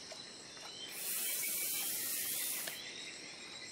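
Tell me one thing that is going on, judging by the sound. A fishing line whizzes off a reel during a cast.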